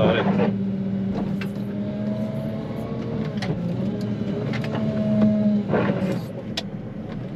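A loader's diesel engine rumbles steadily close by.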